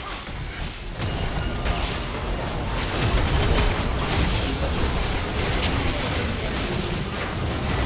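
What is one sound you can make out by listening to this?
Game spell effects crackle and boom during a fight.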